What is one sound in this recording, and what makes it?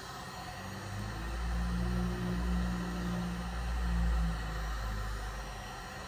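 A heat gun blows with a steady low whir.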